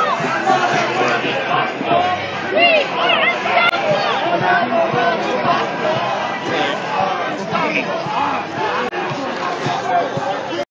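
A large crowd of men and women talks and shouts loudly outdoors, close by.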